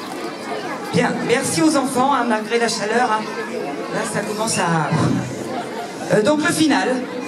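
A woman speaks with animation through a loudspeaker.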